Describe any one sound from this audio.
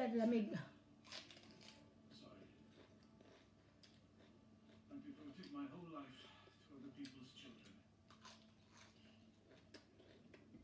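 A woman crunches crisp lettuce as she chews.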